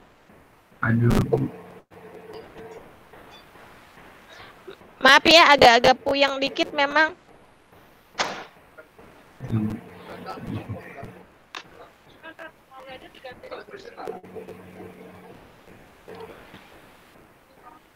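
Young people speak in bursts over an online call.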